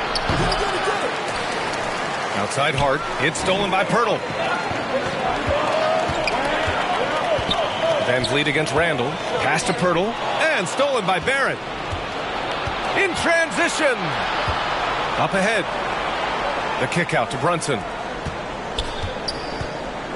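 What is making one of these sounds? A crowd murmurs steadily throughout.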